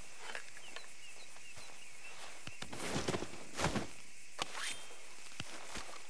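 A knife cuts and tears through an animal's hide.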